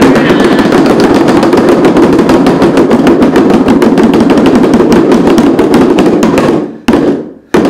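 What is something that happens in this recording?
Several hand drums are beaten in a fast, steady roll.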